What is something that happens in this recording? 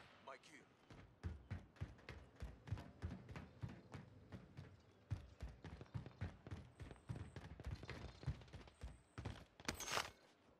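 Quick footsteps run on a hard surface.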